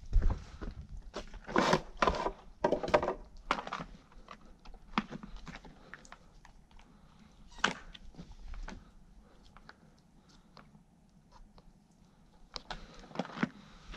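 Plastic clicks and knocks as a chainsaw is handled.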